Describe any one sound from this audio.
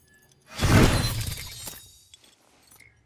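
A loud shimmering whoosh sounds as a glowing device is thrown down.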